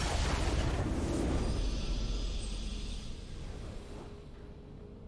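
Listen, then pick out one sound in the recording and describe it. A triumphant game fanfare swells loudly and then fades.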